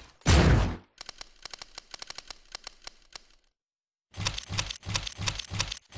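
Rapid game menu clicks tick as a list scrolls.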